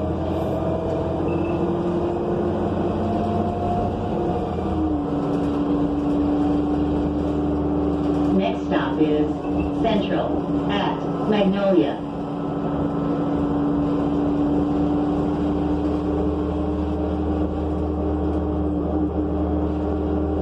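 A bus interior rattles and squeaks as it moves.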